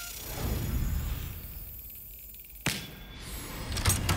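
A key turns and clicks in a lock.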